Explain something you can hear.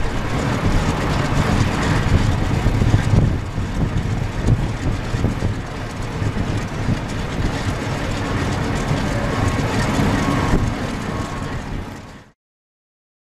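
A propeller plane's engine idles with a loud, throbbing rumble close by.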